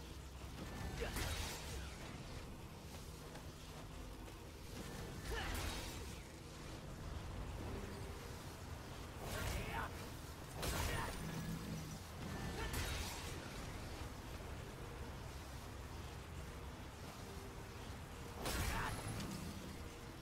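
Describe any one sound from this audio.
Sword slashes and impacts whoosh and crash in bursts.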